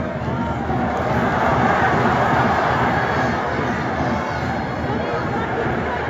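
A large stadium crowd chants and cheers.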